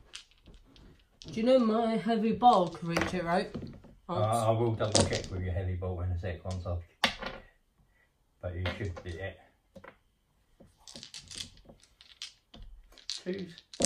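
Dice rattle in a hand.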